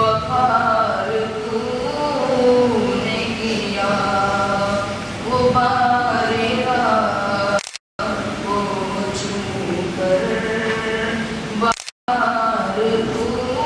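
A teenage boy chants melodically into a microphone, heard through a loudspeaker.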